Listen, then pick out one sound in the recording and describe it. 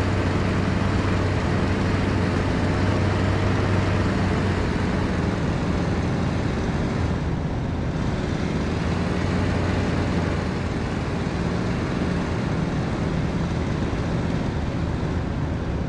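A propeller plane's engine drones steadily.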